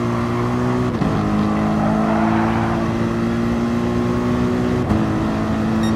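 A racing car gearbox shifts up with a sudden drop in engine pitch.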